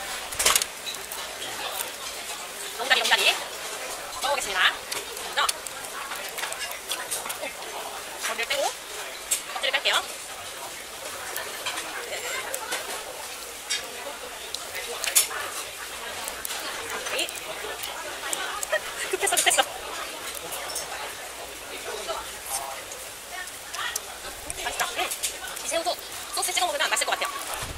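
A young woman talks softly and cheerfully close by.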